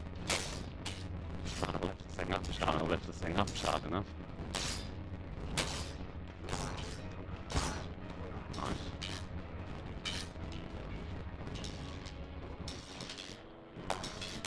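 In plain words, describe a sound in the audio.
Swords clash and clang sharply, again and again.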